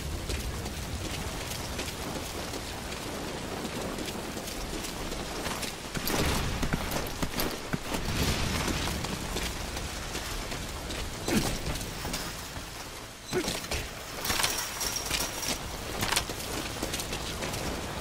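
Footsteps patter quickly on wet ground.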